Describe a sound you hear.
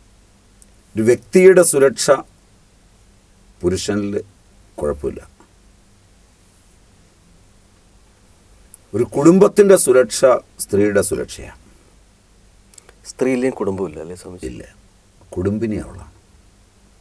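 A middle-aged man speaks calmly in short phrases, close to a microphone.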